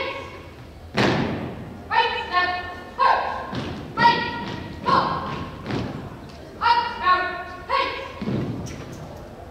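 Boots stamp together on a wooden floor.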